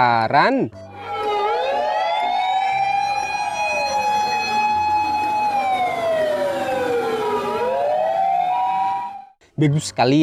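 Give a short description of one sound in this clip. A fire engine siren wails up and down as the truck drives past.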